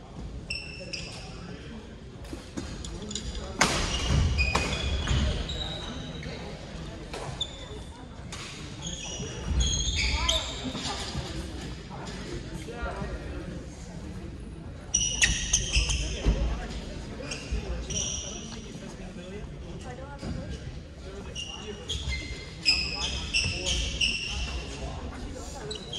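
Shoes squeak sharply on a wooden court floor, echoing in a large hall.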